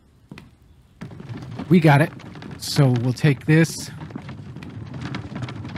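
An elderly man speaks with animation into a close microphone.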